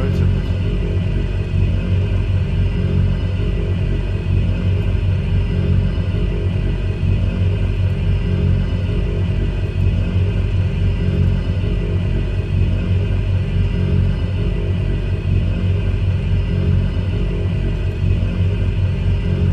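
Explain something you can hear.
Propeller aircraft engines drone steadily and low.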